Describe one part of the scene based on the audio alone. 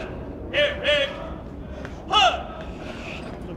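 A man shouts parade commands loudly outdoors.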